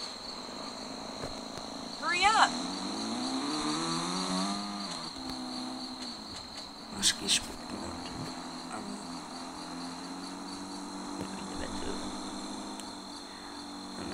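A car engine hums steadily, revving up and settling again.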